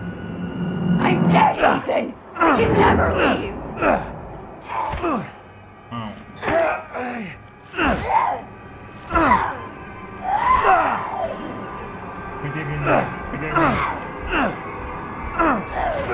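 A young man talks loudly and excitedly into a microphone.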